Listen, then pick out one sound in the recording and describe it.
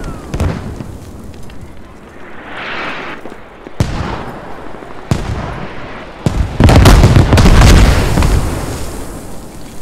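Explosions boom and rumble in the open, one after another.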